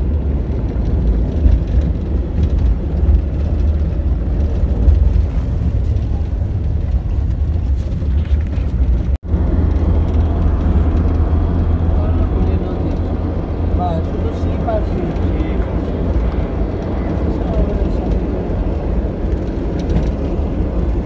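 Road noise roars as the vehicle drives along.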